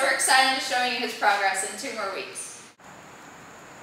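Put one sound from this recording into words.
A young woman speaks clearly and calmly, close to a microphone.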